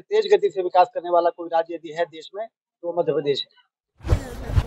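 A middle-aged man speaks calmly into microphones, close by.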